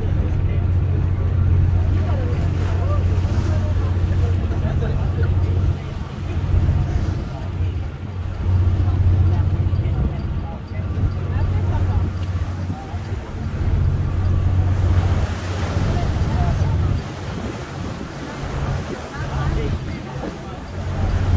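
Wind blows across open water.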